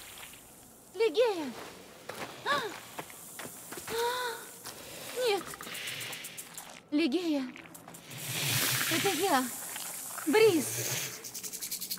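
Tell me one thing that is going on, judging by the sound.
A woman calls out anxiously, close by.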